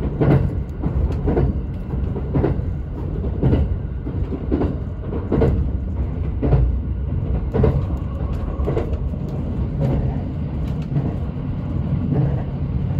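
Train wheels thump rhythmically over rail joints.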